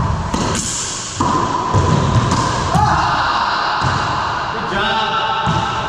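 A rubber ball smacks against the walls and racquets, echoing sharply around a hard-walled court.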